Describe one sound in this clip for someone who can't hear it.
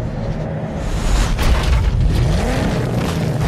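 A car lands hard and crashes into bushes.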